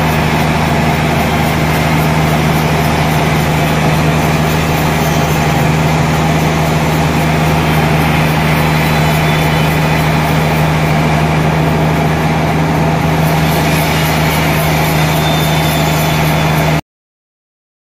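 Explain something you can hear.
A large band saw whines steadily as it cuts through a log.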